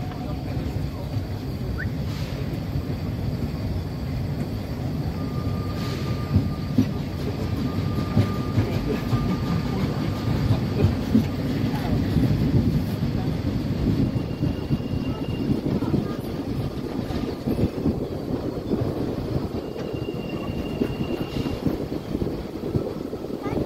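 Wheels rattle and clack over the rail joints.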